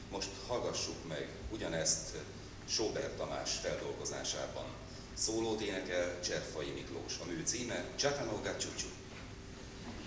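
A man reads aloud calmly into a microphone in an echoing hall.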